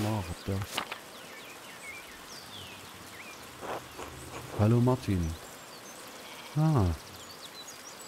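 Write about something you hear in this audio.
A middle-aged man speaks briefly into a microphone, in short phrases.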